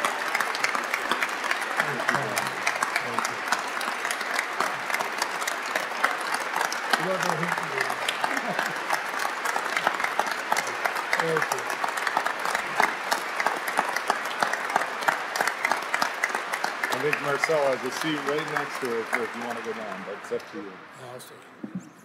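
A large crowd applauds and claps steadily in a large echoing hall.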